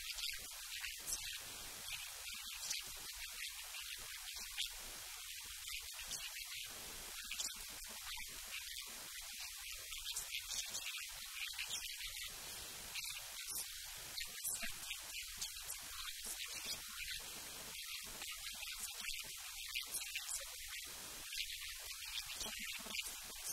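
A middle-aged woman speaks calmly, close to the microphone.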